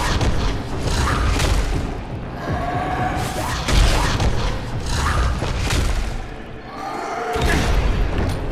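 Heavy blows thud and squelch into flesh.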